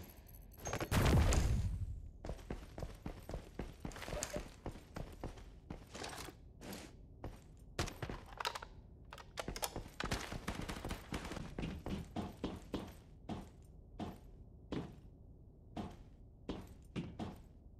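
Footsteps tread across a concrete floor.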